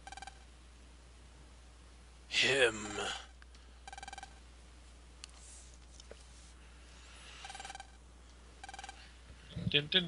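Short electronic blips chatter rapidly in bursts, like game dialogue text ticking out.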